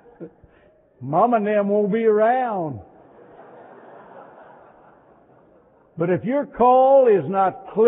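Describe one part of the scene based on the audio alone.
An elderly man preaches loudly and with fervour through a microphone.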